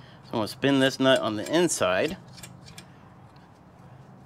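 A hand handles a metal rod with faint knocks.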